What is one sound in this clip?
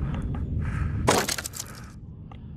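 A wooden crate smashes apart with a loud crack.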